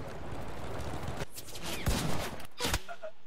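A rifle shot cracks nearby.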